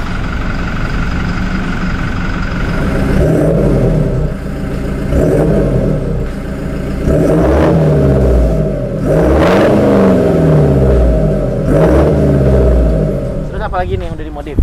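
A car engine idles and then revs hard again and again, its exhaust roaring.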